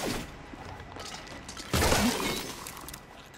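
A small explosion bursts with a sharp bang.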